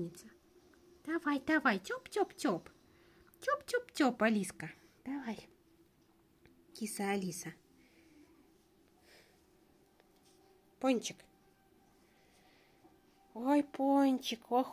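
A kitten mews.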